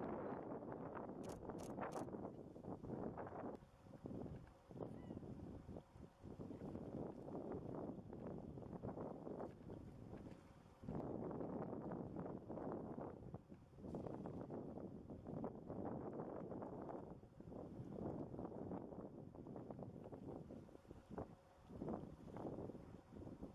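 Water ripples and flows gently.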